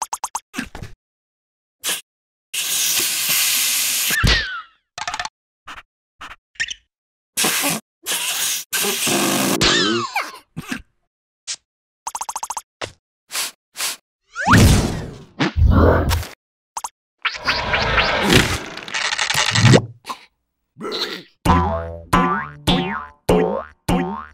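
Small cartoon creatures chatter and squeal in high, silly voices.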